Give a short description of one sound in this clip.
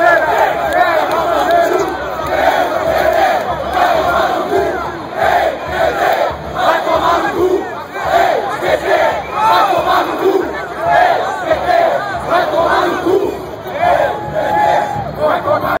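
A large crowd of men and women shouts and cheers loudly and close by.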